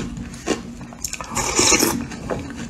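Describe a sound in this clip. A young woman slurps food loudly up close.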